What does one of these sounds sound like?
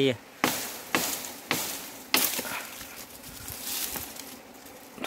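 Dry leaves and twigs rustle and snap close by.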